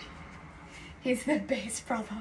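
A young woman speaks cheerfully up close.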